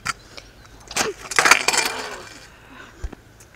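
A scooter clatters onto the asphalt.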